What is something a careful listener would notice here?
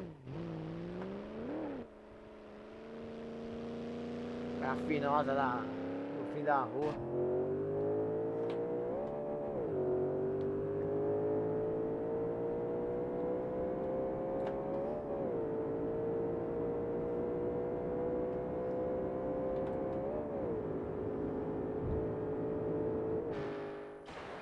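A car engine revs hard and climbs through the gears.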